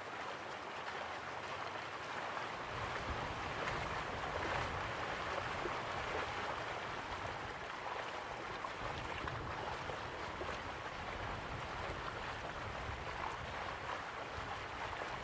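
Waterfalls rush steadily in the distance.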